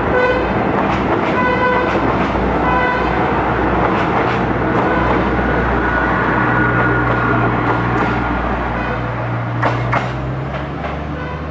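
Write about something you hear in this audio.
A train rumbles past close by on the tracks.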